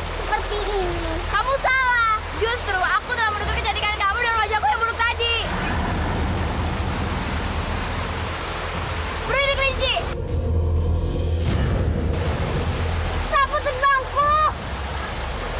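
A child speaks in a high, animated voice, close by.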